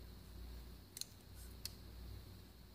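A folding knife's blade snaps shut with sharp metallic clicks.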